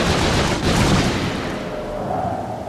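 A magical blast bursts with a bright crackling crash.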